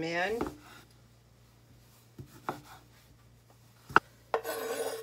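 A knife taps on a wooden cutting board.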